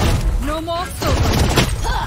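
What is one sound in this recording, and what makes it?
Rapid gunshots ring out close by.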